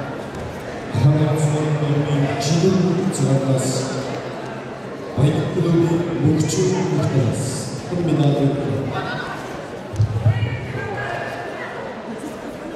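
Spectators shout and cheer loudly in a large echoing hall.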